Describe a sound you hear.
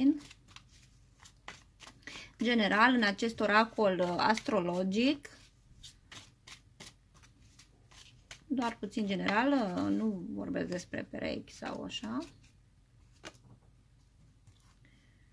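Playing cards riffle and snap as they are shuffled by hand.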